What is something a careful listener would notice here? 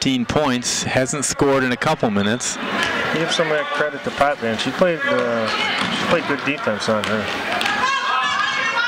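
A crowd of spectators cheers and shouts in an echoing gym.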